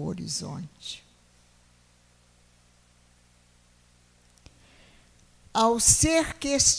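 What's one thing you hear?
An older woman speaks calmly into a microphone, heard through a loudspeaker.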